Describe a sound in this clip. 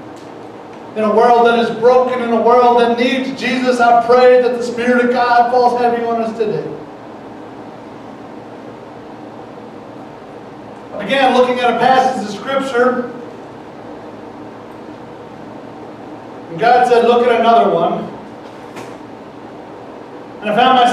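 A man speaks calmly through a headset microphone in a room with some echo.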